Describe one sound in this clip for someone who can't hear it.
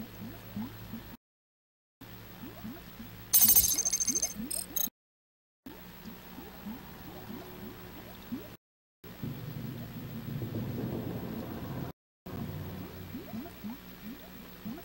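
An electronic scanner gives quick rising chirps as it is tuned.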